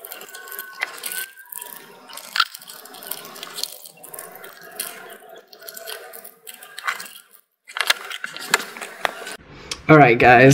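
Foil card wrappers crinkle and rustle.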